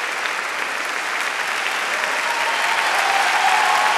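A cello plays.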